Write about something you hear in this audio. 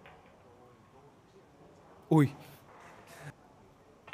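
A pool ball drops into a pocket.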